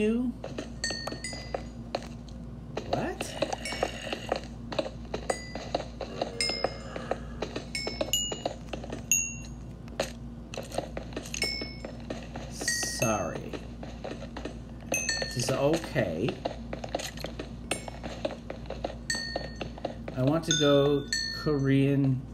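Small pops sound as loose items are picked up.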